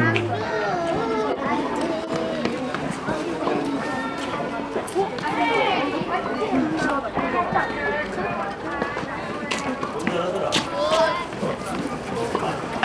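Young girls chatter and call out nearby.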